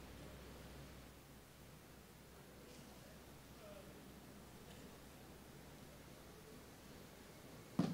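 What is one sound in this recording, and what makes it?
A crowd of young people murmurs quietly in a large echoing hall.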